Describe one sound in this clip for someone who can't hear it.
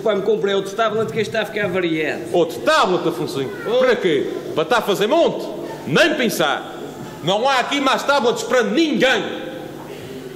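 A man speaks with animation into a microphone, his voice filling a hall.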